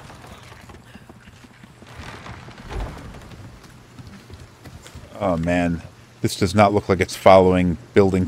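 Footsteps run across wooden planks.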